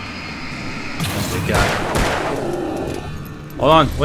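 A flare bursts with a loud hissing roar.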